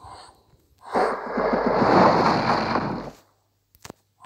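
A fiery magic blast roars and crackles.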